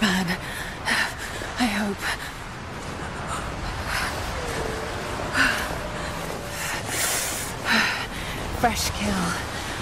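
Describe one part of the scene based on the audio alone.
Wind blows hard in gusts through a snowstorm.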